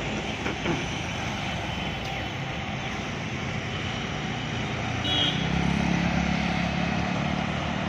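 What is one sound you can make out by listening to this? A motorbike engine drones past close by.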